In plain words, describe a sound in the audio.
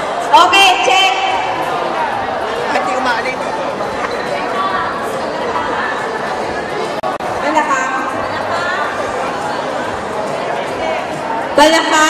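Several young women chatter and call out with animation.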